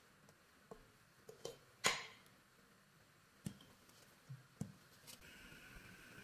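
A metal ladle clinks against a metal pot.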